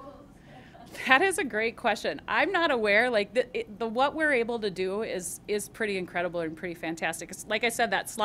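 A middle-aged woman speaks into a microphone with animation.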